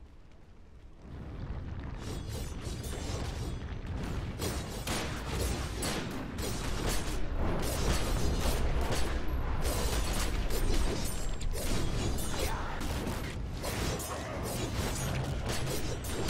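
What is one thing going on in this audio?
Fiery explosions boom and roar.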